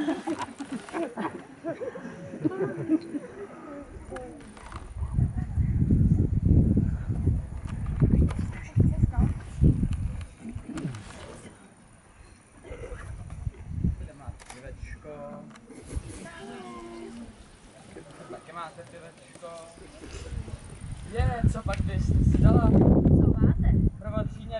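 Children and adults chatter outdoors.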